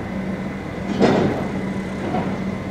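A heavy chain rattles and clanks against metal.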